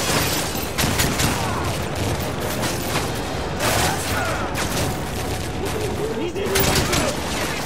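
Gunshots crack in bursts.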